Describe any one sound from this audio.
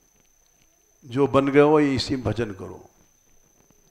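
An elderly man speaks calmly into a headset microphone.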